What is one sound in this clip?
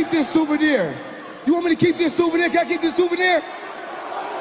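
A man speaks loudly through a microphone over a loudspeaker.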